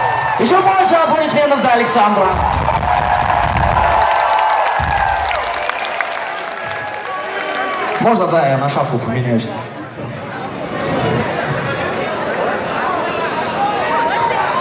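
A crowd cheers and shouts close by.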